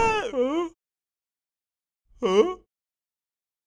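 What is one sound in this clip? A cartoon man screams and yells with excitement.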